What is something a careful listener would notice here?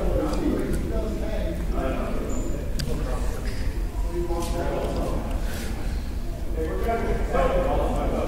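Voices of children and adults chatter and call out across a large echoing gym.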